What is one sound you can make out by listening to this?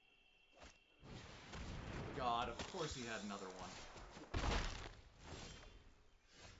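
Digital game sound effects whoosh and chime.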